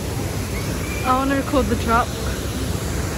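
People scream on a roller coaster in the distance.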